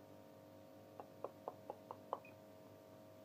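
An oven timer beeps several times in quick succession.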